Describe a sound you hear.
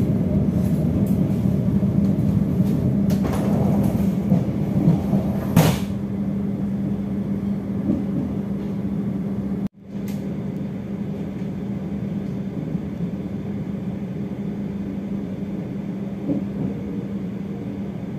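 A train rumbles steadily along the tracks with a low drone.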